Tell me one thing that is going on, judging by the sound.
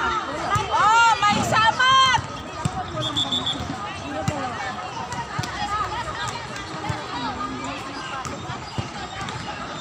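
A volleyball thumps off players' hands and forearms.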